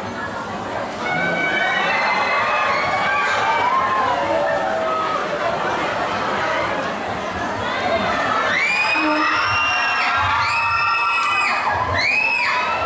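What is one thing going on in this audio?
A large crowd chatters loudly.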